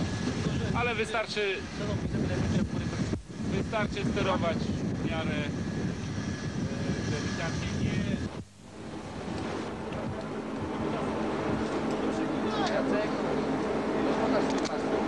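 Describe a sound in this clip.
A man speaks nearby, raising his voice over the wind.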